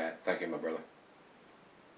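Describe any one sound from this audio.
An elderly man speaks briefly and calmly, close by.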